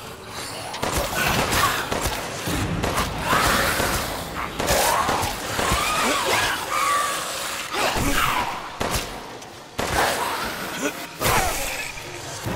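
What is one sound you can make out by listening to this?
Pistol shots ring out several times.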